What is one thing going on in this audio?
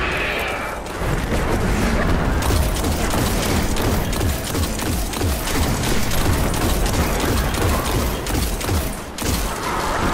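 Rapid gunfire blasts out in quick bursts.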